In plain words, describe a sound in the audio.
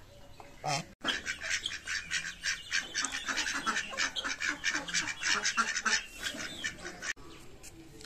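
Ducks quack rapidly and repeatedly.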